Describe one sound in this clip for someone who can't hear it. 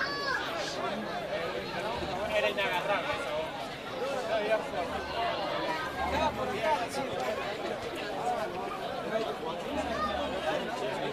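Spectators chatter and call out at a distance.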